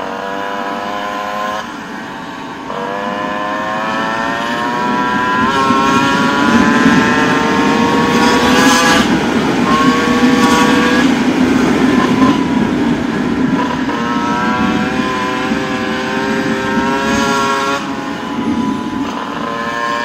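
A motorcycle engine hums close by, rising and falling in pitch as it changes speed.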